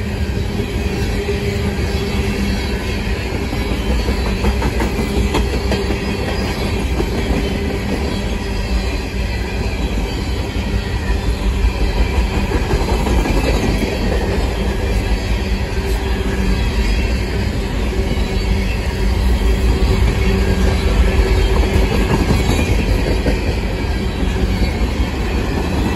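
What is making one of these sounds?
Steel wheels clatter and squeal on the rails.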